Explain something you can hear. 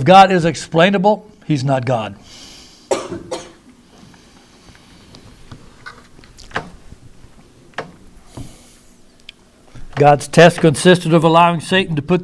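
A middle-aged man reads aloud calmly through a microphone, pausing between phrases.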